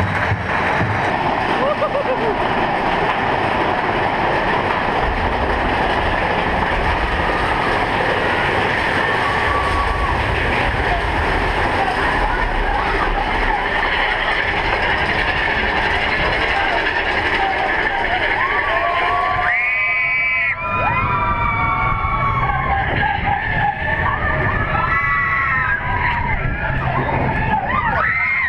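A roller coaster rumbles and clatters along its track.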